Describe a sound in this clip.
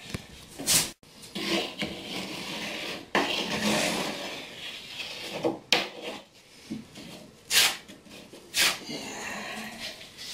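A putty knife scrapes over a wall.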